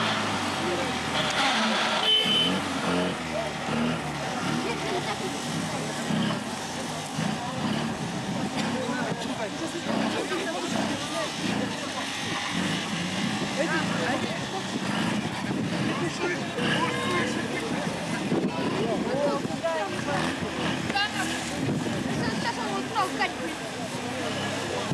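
An off-road vehicle engine growls and labours as it climbs.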